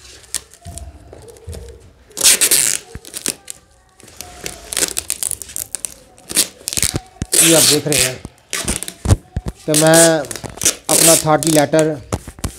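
Packing tape screeches as it is pulled off the roll.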